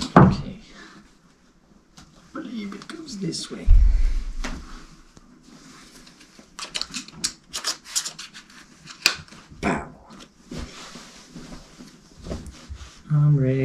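Plastic buckles and straps click and rustle as a harness is fastened.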